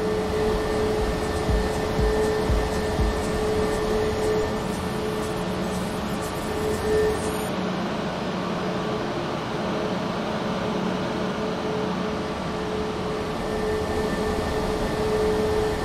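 Jet engines hum steadily as an airliner taxis slowly.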